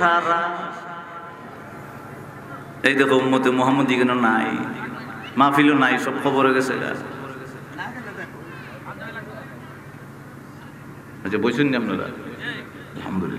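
A man preaches loudly and rhythmically into a microphone, heard through loudspeakers with echo.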